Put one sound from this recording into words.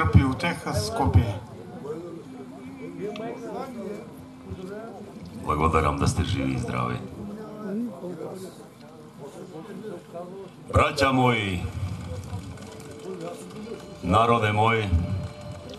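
An elderly man speaks outdoors in bursts, with pauses between.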